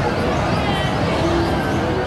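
A roller coaster rumbles along its track nearby.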